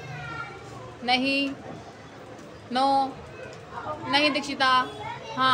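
A young child speaks loudly and with animation close to a microphone, in short bursts.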